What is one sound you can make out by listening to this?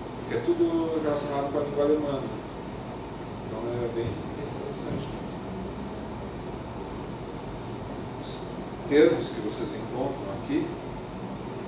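A middle-aged man speaks calmly.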